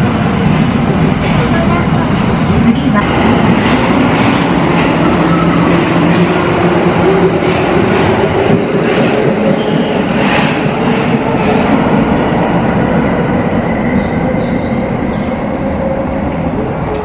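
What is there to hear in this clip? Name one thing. A subway train rumbles loudly along the track and slowly fades.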